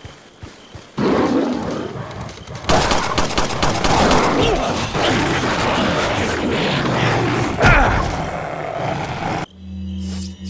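A dog snarls and barks while attacking.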